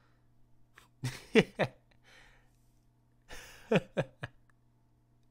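A young man sighs and mutters quietly, close by.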